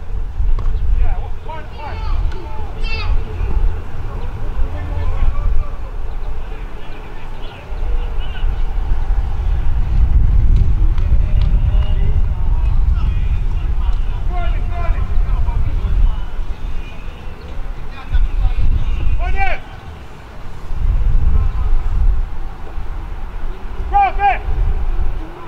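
Distant men call out across an open field.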